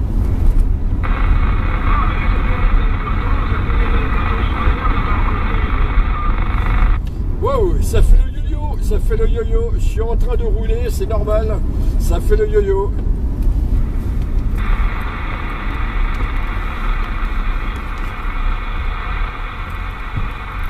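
A radio hisses with static.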